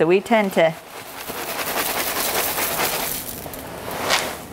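Dry cereal pours into a metal pan with a rustle.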